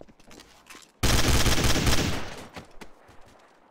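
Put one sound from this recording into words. A rifle fires a rapid burst of shots close by.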